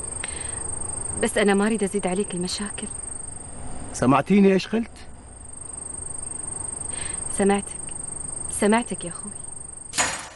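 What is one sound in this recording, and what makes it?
A young woman speaks softly and emotionally.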